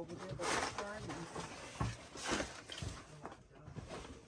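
Boxes and loose items rustle and clatter as someone rummages through a cluttered pile.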